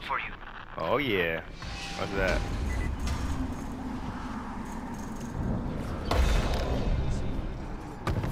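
Footsteps thud across a metal roof.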